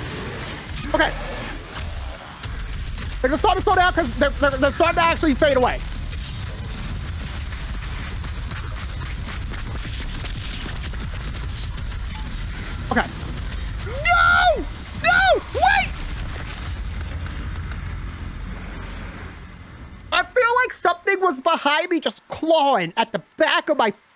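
A young man talks excitedly and shouts into a close microphone.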